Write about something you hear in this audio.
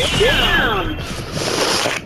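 Wooden and glass panels shatter with a crash.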